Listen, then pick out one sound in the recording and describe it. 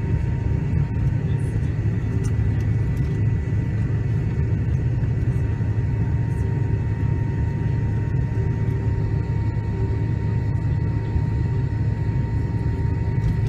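A jet engine roars steadily from inside an aircraft cabin as the plane taxis.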